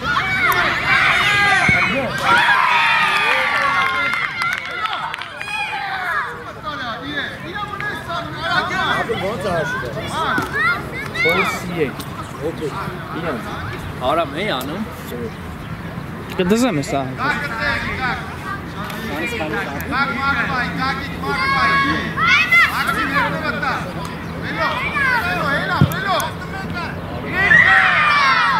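Children shout and call out to one another across an open pitch.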